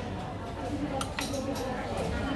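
A fork clinks against a metal pan.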